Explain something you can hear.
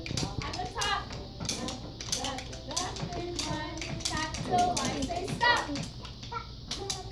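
A young woman sings along with animation nearby.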